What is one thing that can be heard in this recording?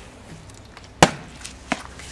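A plastic bottle drops and knocks on the ground.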